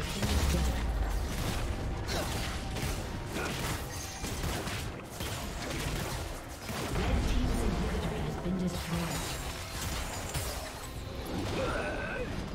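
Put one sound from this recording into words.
Fantasy battle effects crackle, whoosh and thud in quick bursts.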